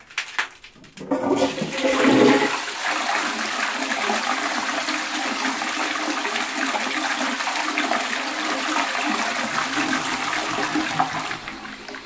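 A toilet flushes with rushing, gurgling water that goes on steadily.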